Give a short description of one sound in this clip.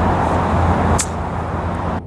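A golf club strikes a ball with a crisp click.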